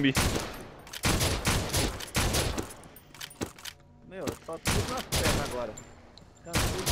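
A shotgun fires loudly, again and again.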